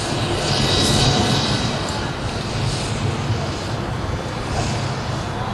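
A marching band plays loudly, echoing through a large stadium.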